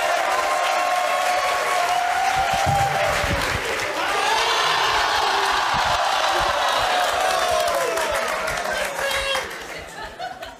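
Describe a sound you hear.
A studio audience cheers and chants loudly.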